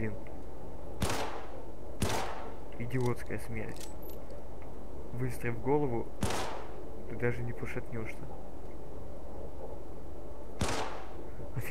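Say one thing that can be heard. A gun fires single loud shots with a short ringing tail.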